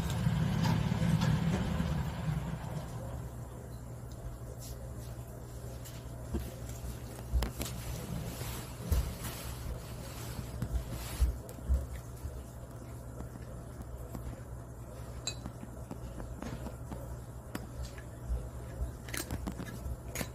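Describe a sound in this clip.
A cat crunches dry kibble close by.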